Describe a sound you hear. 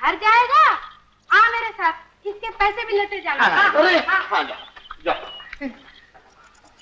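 A group of men and women laugh loudly together.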